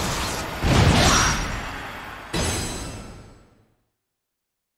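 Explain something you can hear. A result jingle plays with a loud swell and fades away.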